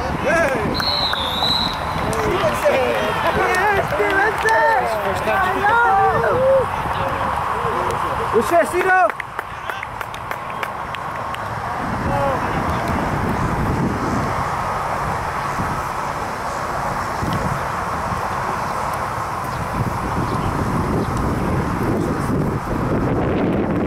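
Wind buffets the microphone steadily.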